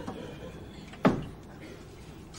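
A wooden wardrobe door clicks open.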